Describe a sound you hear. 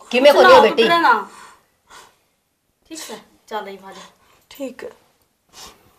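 A woman speaks tearfully and close by.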